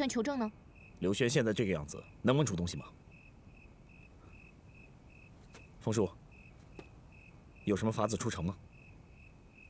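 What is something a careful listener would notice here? A young man speaks in a low, serious voice, close by.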